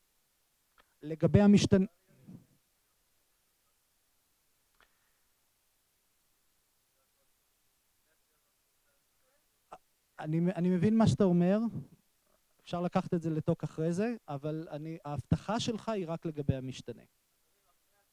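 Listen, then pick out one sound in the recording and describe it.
A man speaks into a microphone, heard through a loudspeaker, in a calm, explaining tone.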